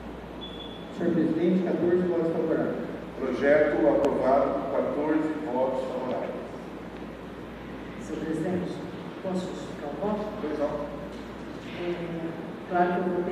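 A man speaks calmly through a microphone, heard over loudspeakers.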